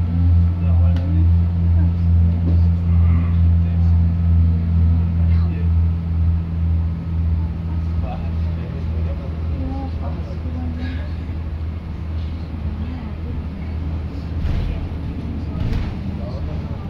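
Rattles and knocks sound through a moving bus.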